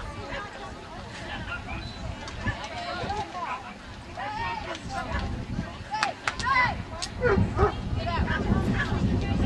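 A man outdoors calls out commands to a running dog with animation.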